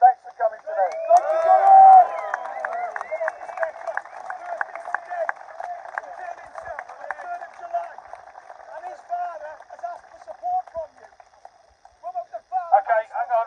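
A man speaks loudly through a megaphone outdoors.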